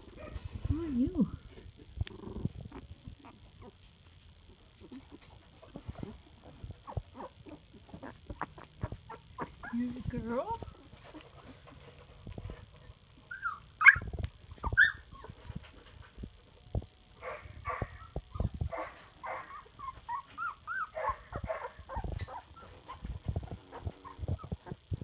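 Puppies whimper and squeak softly.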